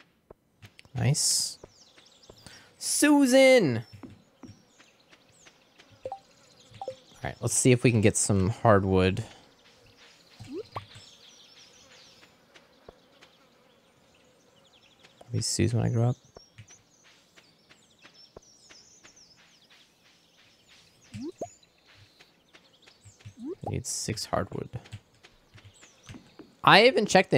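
A young man speaks casually into a close microphone.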